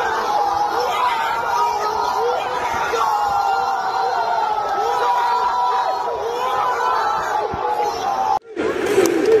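A young man shouts excitedly close by, amid a chanting crowd.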